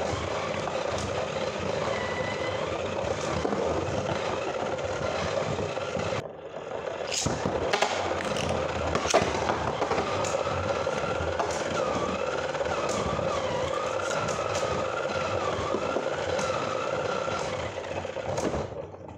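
Spinning tops clack sharply against each other and the arena wall.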